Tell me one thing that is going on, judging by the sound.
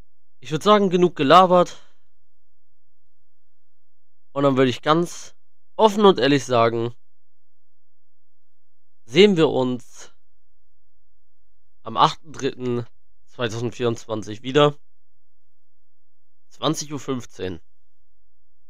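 A young man speaks close into a microphone in short bursts with pauses.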